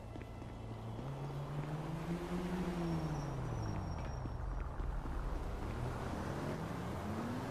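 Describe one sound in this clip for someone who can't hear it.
Car engines hum and rise and fall as cars drive past.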